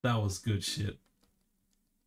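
A man speaks briefly and cheerfully into a close microphone.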